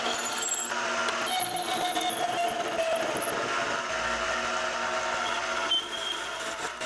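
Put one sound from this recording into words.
A cutting tool scrapes and squeals against turning metal.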